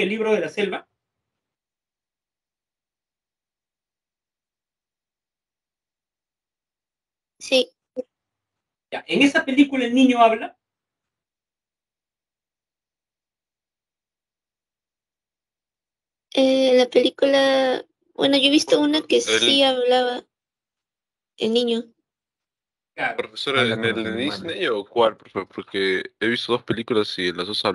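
A young man speaks calmly through a microphone in an online call, with pauses.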